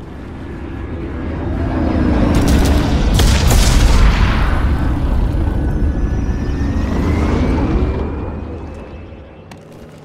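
A spacecraft engine roars loudly as it passes close by.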